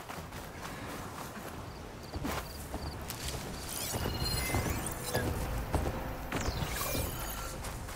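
Robotic machines whir and beep nearby.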